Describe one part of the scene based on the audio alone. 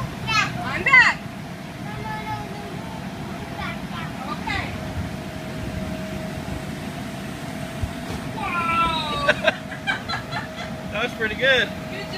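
Feet thump on a bouncy inflatable floor.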